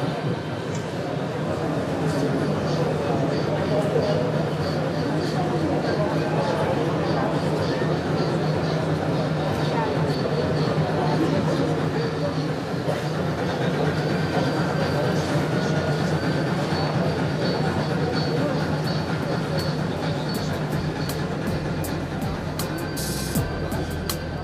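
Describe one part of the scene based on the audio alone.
A small model locomotive hums steadily as it rolls along the track.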